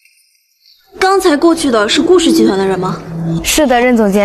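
A young woman asks a question with a curious tone, close by.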